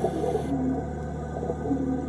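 Air bubbles gurgle and rush upward from a diver's breathing gear underwater.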